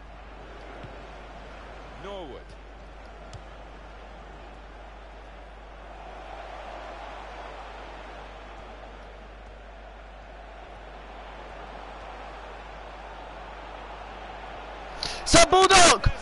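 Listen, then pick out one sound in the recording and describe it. A large stadium crowd murmurs and hums steadily.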